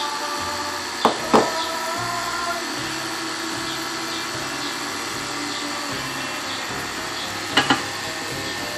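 A utensil clinks against a mixing bowl.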